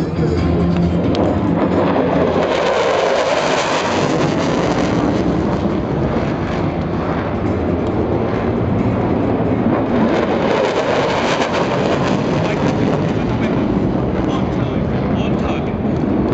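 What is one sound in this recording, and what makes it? A jet aircraft roars loudly overhead.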